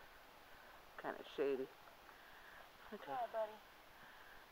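A young girl speaks softly up close.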